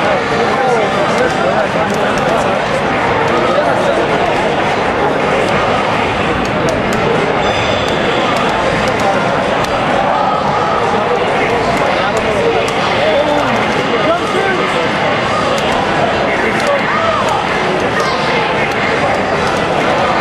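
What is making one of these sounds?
Upbeat game music plays through a television speaker.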